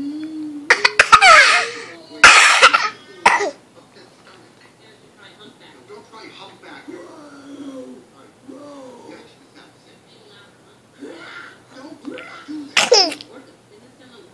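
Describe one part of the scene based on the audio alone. A baby squeals and laughs loudly close by.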